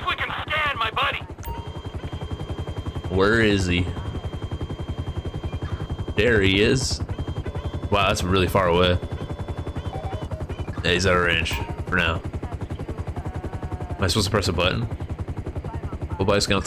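A helicopter's rotor thuds in a steady, rapid beat.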